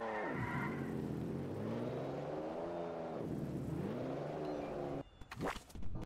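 A car engine revs up and down as a car speeds along.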